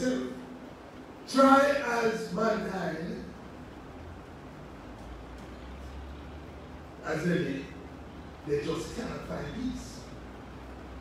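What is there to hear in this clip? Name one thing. A middle-aged man speaks with animation into a microphone, pausing between phrases.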